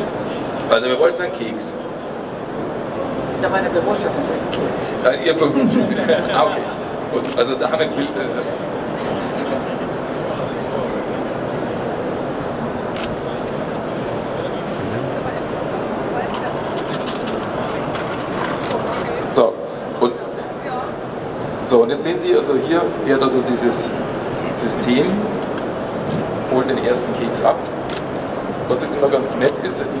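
A man speaks calmly into a microphone, heard over loudspeakers.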